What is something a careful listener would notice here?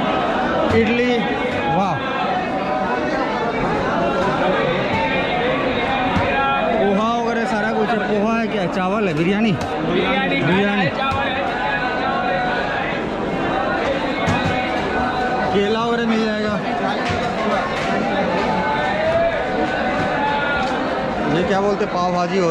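Men talk close by with animation.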